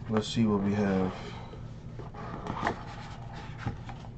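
A cardboard lid scrapes and slides off a box.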